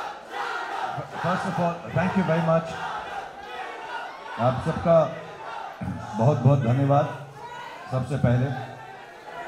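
A man speaks calmly through a microphone over loudspeakers.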